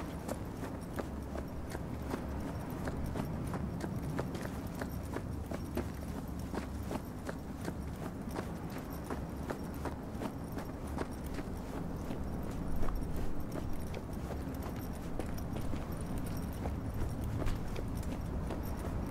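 Footsteps crunch quickly on dry dirt and gravel.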